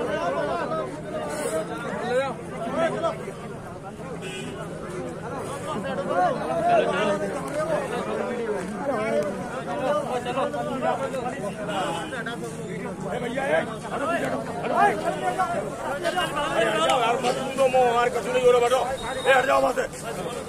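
Several young people talk and shout with animation close by, outdoors.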